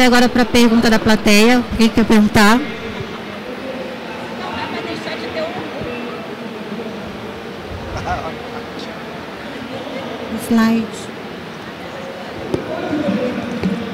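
A person speaks loudly through a microphone over loudspeakers in a large echoing hall.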